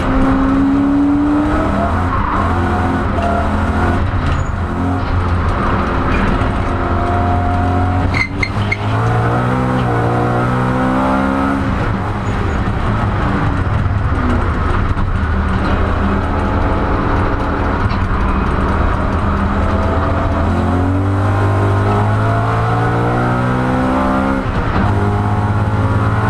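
A race car engine roars loudly close by, revving up and down through the gears.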